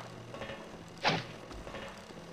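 An arrow is loosed from a bow with a sharp twang.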